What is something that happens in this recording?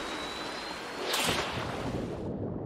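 Water splashes loudly in a sudden burst.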